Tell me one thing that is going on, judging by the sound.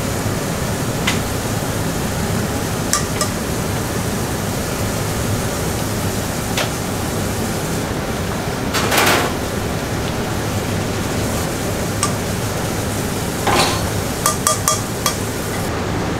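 A metal ladle clinks against a strainer.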